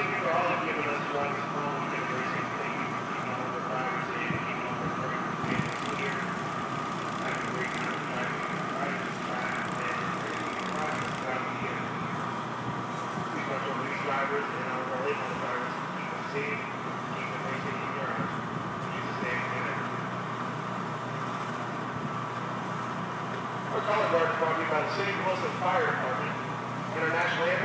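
A man speaks calmly into a microphone, heard over loudspeakers outdoors.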